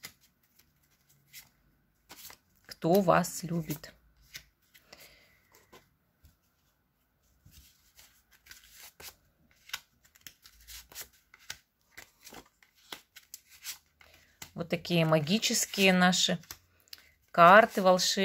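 Playing cards shuffle and flick softly.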